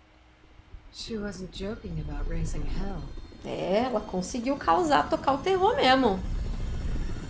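A woman speaks calmly in a low voice.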